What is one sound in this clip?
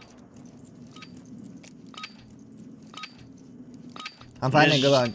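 Short beeps tick off a game countdown.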